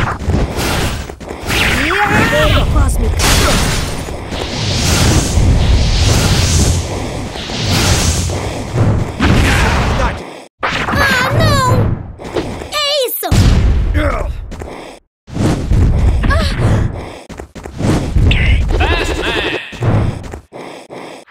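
Game sword slashes and magic blasts whoosh and crash again and again.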